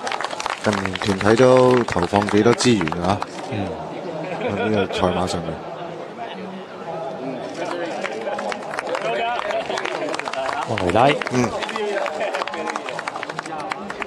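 A crowd applauds outdoors.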